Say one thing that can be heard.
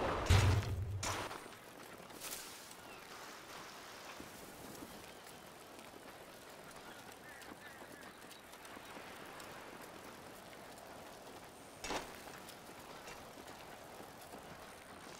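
Bicycle tyres roll and crunch over rough dirt.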